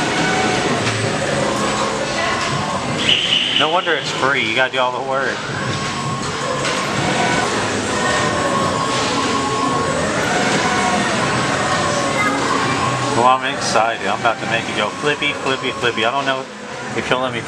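A pendulum ride swings back and forth.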